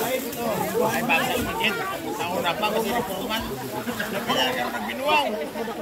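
Water splashes as children bathe.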